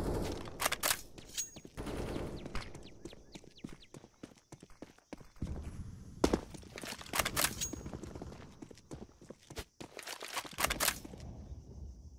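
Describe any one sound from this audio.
Quick footsteps tap on hard ground.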